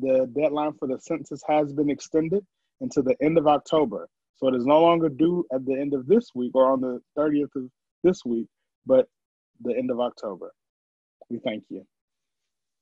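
A young man talks calmly over an online call.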